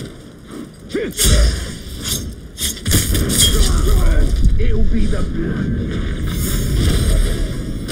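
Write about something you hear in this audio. Heavy blows land and metal clashes in a close fight.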